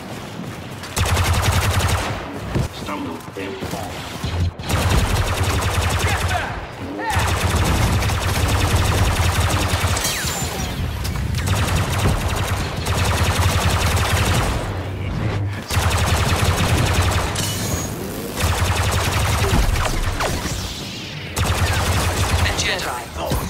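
Blaster shots fire in rapid, loud bursts.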